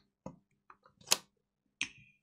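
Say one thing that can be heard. A game controller clicks as it slides onto a handheld console.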